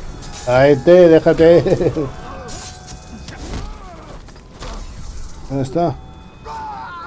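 Swords clash and strike in a close fight.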